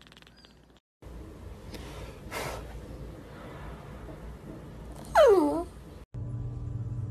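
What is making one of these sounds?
A small dog growls and whines up close.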